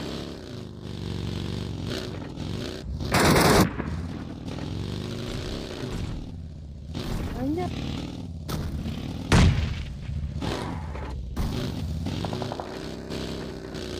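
A buggy's engine roars and revs up and down.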